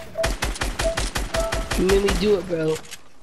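A rapid burst of gunfire rattles close by.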